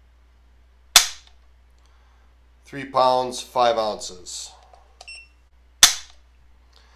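A rifle trigger snaps with a sharp click.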